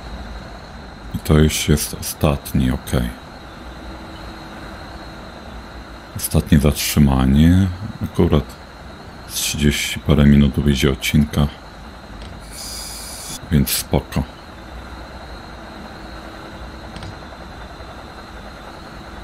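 A train engine hums and wheels rumble steadily along the rails.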